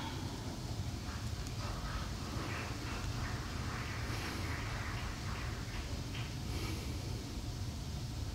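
A woman speaks softly in a large room.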